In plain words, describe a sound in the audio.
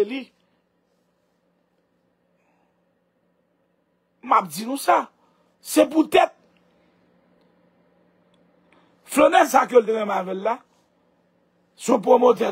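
A woman speaks with animation, close to a microphone, in short bursts.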